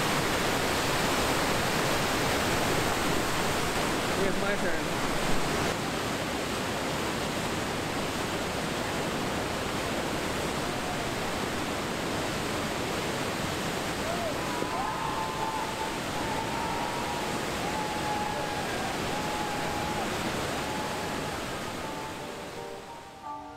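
River rapids roar and churn loudly outdoors.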